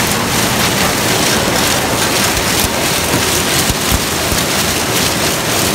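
A harvester's header roars loudly as it cuts through dry corn stalks.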